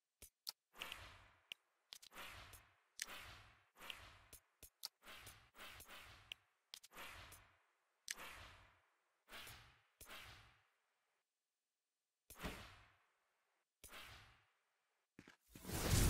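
Short electronic clicks and whooshes sound again and again.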